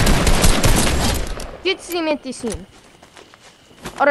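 Shotgun blasts go off in quick bursts.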